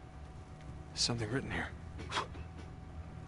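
A man speaks calmly and briefly.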